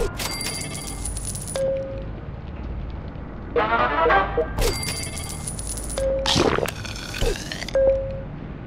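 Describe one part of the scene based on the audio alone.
Short electronic game beeps and chimes sound.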